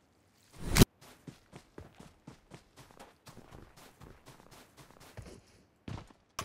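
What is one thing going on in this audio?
Footsteps crunch quickly over snowy ground.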